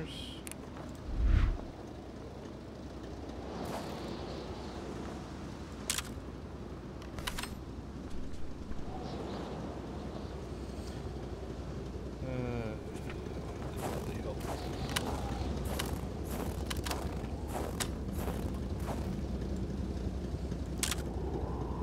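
Wind blows steadily in a snowstorm.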